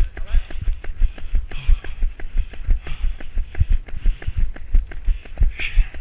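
Running footsteps thud rhythmically on a dirt trail.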